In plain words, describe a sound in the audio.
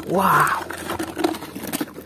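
A plastic toy car rattles against a plastic basket.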